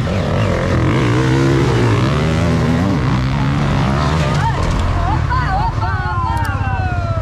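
Dirt bike engines roar and rev loudly close by.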